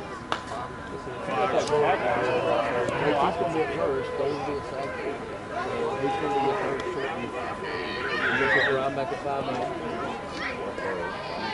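Men talk and call out across an open outdoor field at a distance.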